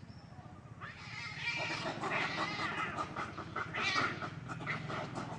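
A cat yowls and hisses.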